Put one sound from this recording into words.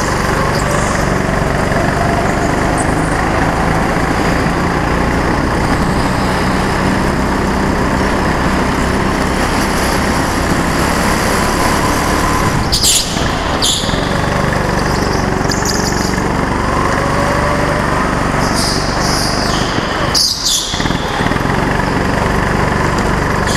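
A kart engine buzzes loudly and steadily close by.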